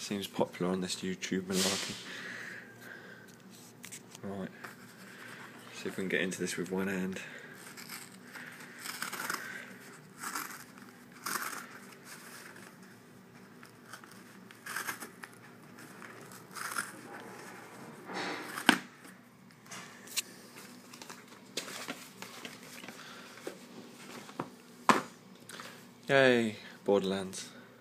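A cardboard mailer rustles and scrapes as hands handle it.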